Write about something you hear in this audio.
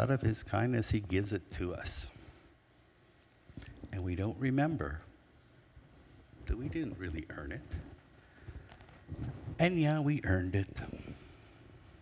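A middle-aged man speaks calmly through a microphone in a large room with an echo.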